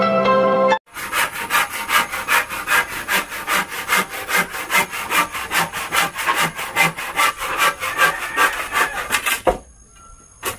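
A machete chops rapidly into wood outdoors.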